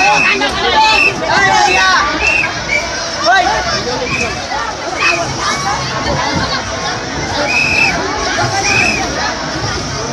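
Children squeal and shriek with excitement.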